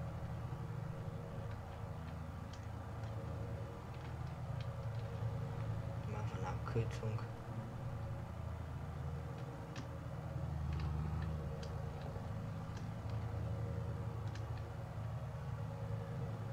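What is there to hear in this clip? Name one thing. A tractor engine rumbles steadily.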